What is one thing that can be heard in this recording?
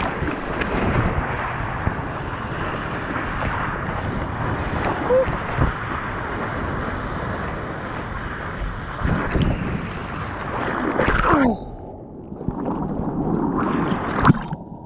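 Water splashes against a surfboard.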